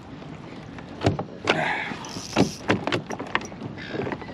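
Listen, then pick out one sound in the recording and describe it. Hard knocks sound on a plastic boat hull.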